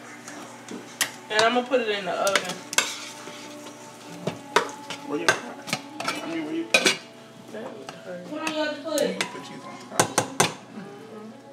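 A spoon clinks and scrapes against a metal pot.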